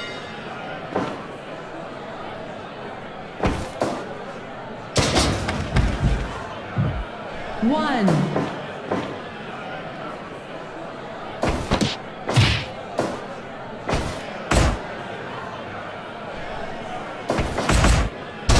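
Heavy blows thud and slap again and again.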